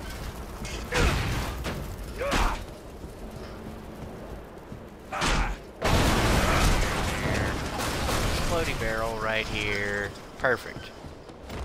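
Loud blasts boom and crash in bursts.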